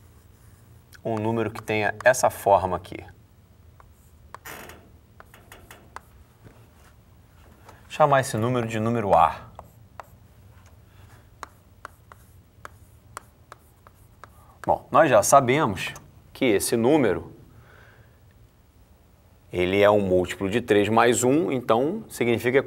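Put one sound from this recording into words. A man speaks calmly, as if lecturing, close to a microphone.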